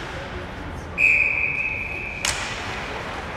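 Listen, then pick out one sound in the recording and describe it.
A referee's whistle blows one long, shrill blast.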